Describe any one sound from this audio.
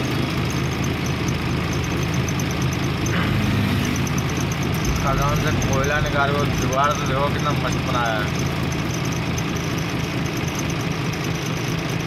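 Cable cars rumble steadily along an overhead cable outdoors.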